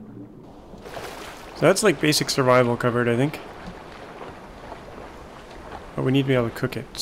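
Gentle sea waves lap steadily.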